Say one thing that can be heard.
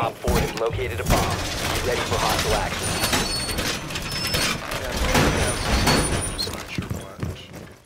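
A heavy metal reinforcement grinds and clanks into place against a wall.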